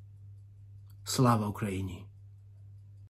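A man speaks firmly and with emotion, close to a microphone.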